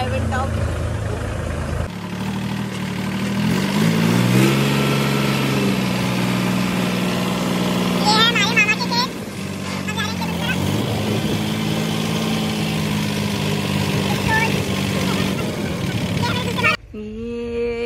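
A diesel tractor engine chugs at a steady speed close by.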